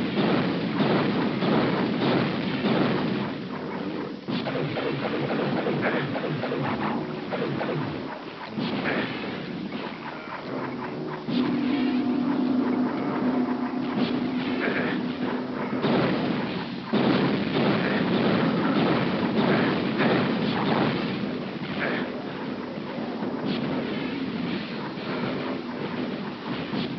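Monsters screech and growl.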